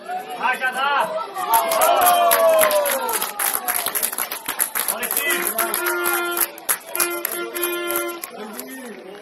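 A crowd of spectators cheers and shouts loudly outdoors.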